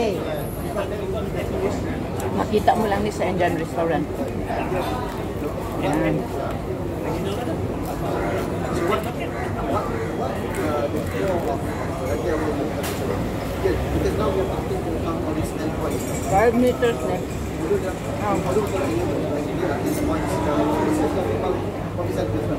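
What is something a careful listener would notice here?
Flatbread crackles and tears in a woman's hands.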